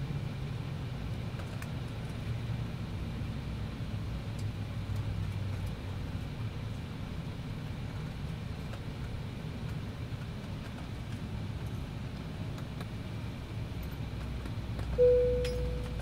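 An aircraft cabin hums with a steady low engine drone.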